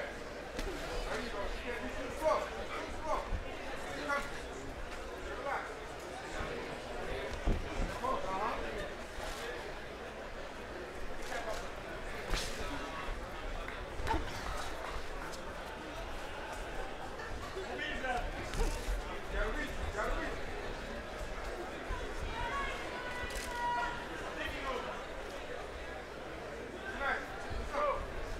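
Boxing gloves thud against bodies in quick blows.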